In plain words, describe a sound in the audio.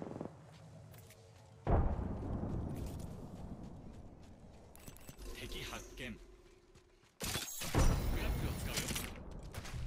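Footsteps run on dirt.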